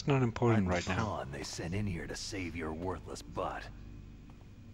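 A young man speaks in a low, gruff voice, close up.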